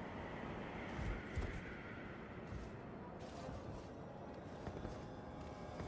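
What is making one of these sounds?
Footsteps thud on a stone floor.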